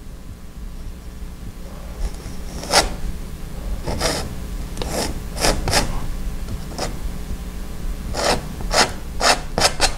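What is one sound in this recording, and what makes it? A brush brushes softly across canvas.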